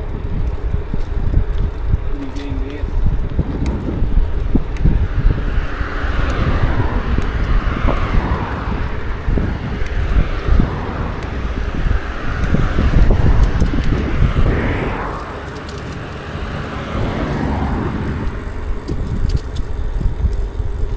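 Bicycle tyres roll over pavement.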